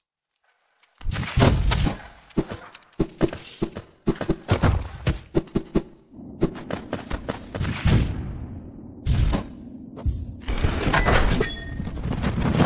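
Small footsteps patter quickly on a hard surface.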